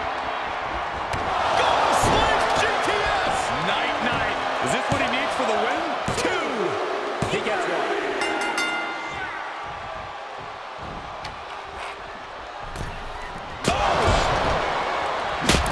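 A large crowd cheers and roars in a big arena.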